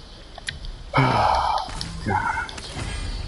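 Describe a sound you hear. A bright magical chime rings out as an item is picked up.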